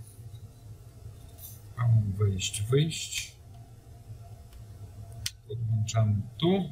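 Small metal and plastic parts click and rattle softly as they are handled.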